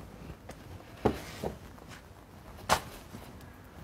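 A man kicks a car's bumper with dull thuds.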